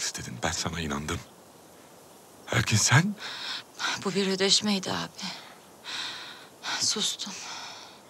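A young woman speaks quietly and sadly.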